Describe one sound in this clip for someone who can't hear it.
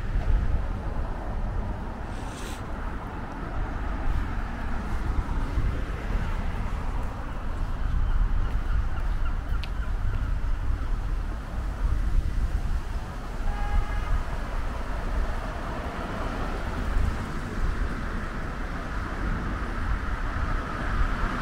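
Wind blusters outdoors, rumbling low and unsteadily.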